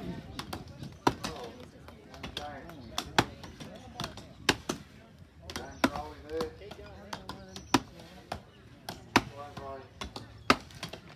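Axes chop into wood with sharp, repeated thuds outdoors.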